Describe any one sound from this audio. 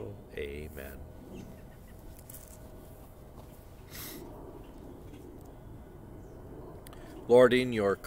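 An elderly man speaks calmly, close by.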